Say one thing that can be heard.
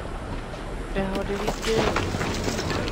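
A vending machine plays a short, tinny jingle.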